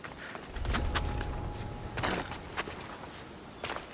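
Hands scrape and grip rough stone while climbing a wall.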